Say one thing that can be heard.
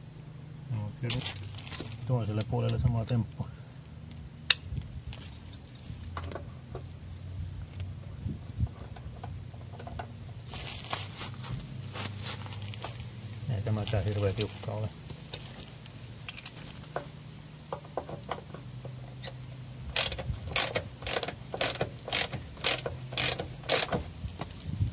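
A socket ratchet clicks as it turns a bolt.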